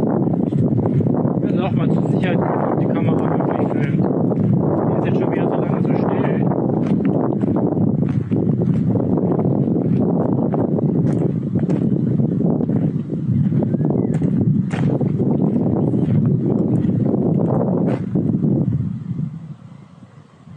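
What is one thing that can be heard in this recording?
Strong wind gusts across the microphone outdoors.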